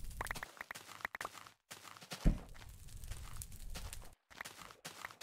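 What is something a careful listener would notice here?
A fire crackles and roars.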